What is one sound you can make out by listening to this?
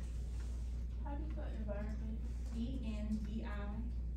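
A woman speaks calmly to a group nearby.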